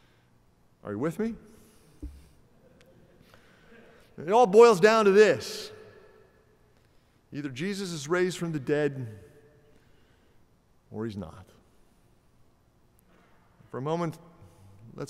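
A middle-aged man speaks calmly and slowly through a microphone in a large echoing hall.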